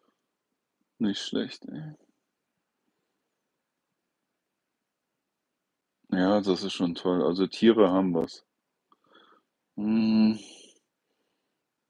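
An older man speaks calmly and close by, in short bursts with pauses.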